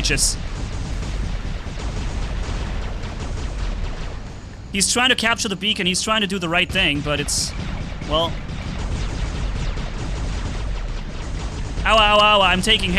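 Game gunfire and explosions rumble steadily.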